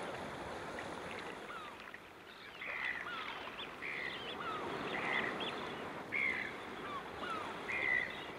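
Waves wash over rocks.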